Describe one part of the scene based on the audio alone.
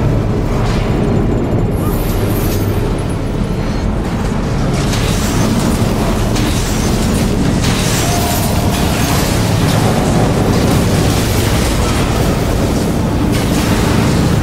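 Weapons clash and magic blasts crackle in a fast fight.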